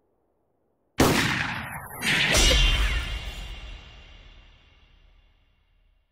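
A volley of rifle shots bursts out loudly, then rings and slowly fades.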